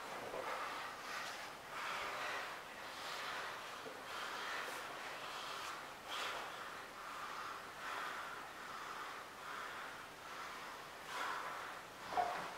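Bodies shift and scuff against a padded mat.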